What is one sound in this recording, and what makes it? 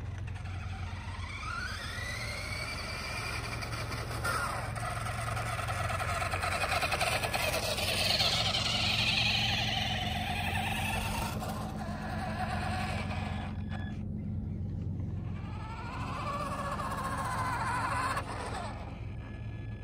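Small tyres rumble on rough asphalt.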